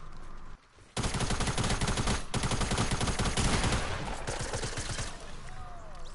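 Rapid gunfire rattles in a video game.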